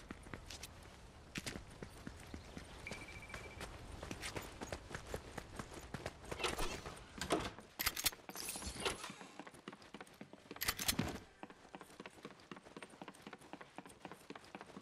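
Quick footsteps patter steadily on hard ground and wooden floors.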